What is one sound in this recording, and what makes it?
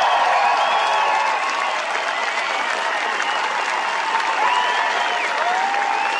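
Many people clap their hands.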